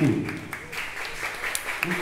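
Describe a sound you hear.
A tambourine jingles.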